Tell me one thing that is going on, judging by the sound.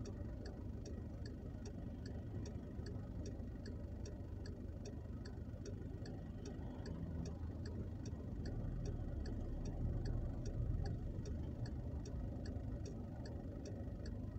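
A car engine hums low and steady, heard from inside the car.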